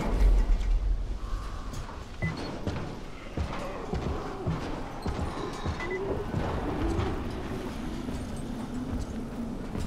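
Footsteps clank across a corrugated metal roof.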